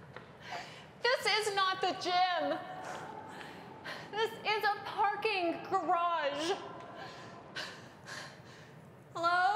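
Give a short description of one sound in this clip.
A young woman speaks with animation, close by, in an echoing space.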